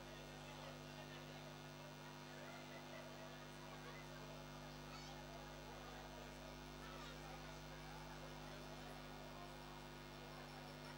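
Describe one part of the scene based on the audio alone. Children chatter in the background.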